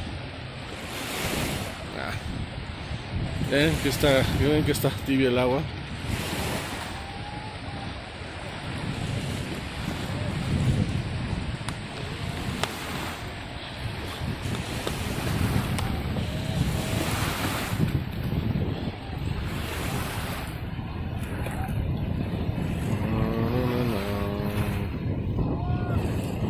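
Small waves lap steadily on the shore.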